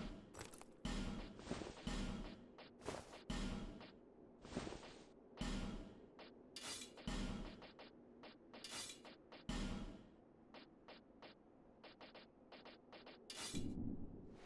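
Short game menu sounds swish and click in quick succession.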